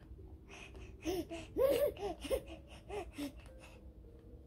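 A baby babbles repeated syllables close by.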